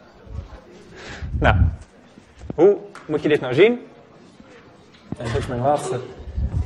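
A man lectures with animation.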